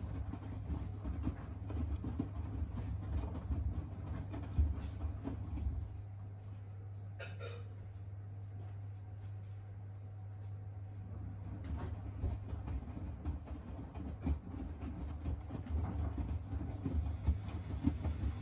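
A washing machine drum turns with a low steady hum.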